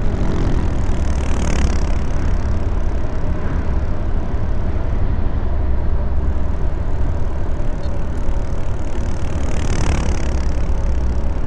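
Vehicles whoosh past in the opposite direction.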